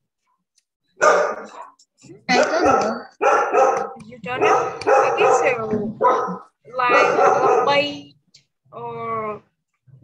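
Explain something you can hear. A young girl speaks clearly over an online call.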